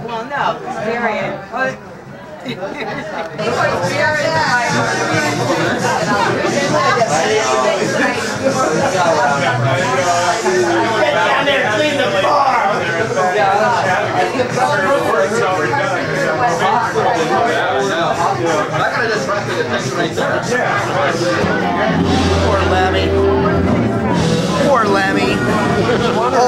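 A crowd of men and women chatter and laugh all around.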